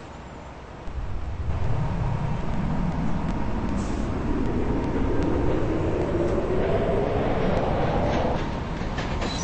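A train motor hums and whines, rising steadily in pitch as the train speeds up.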